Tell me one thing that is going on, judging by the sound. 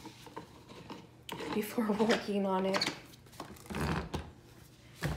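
Hands knock and shift a coffee maker.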